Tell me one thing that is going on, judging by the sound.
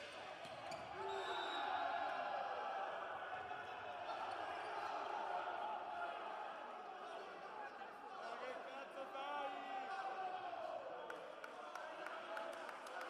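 Young men shout and cheer loudly in an echoing hall.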